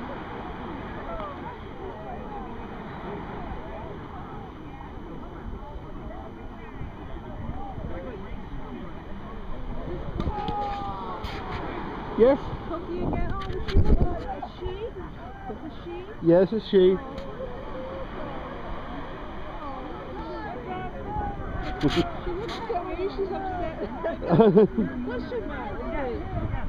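A crowd chatters and shouts excitedly outdoors.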